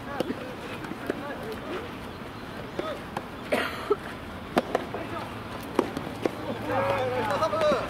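Tennis rackets strike a ball back and forth outdoors.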